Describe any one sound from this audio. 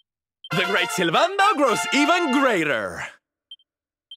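A short cheerful musical fanfare plays.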